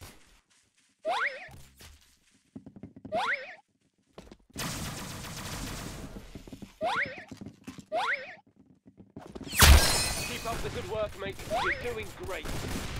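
Metal claws swish through the air in quick swipes.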